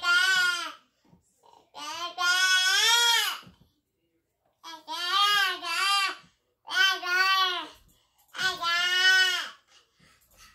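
A toddler sings long, high, wavering sounds close by.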